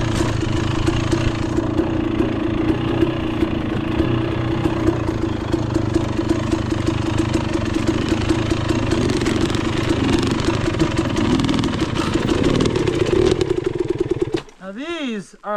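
A dirt bike engine putters and revs steadily close by.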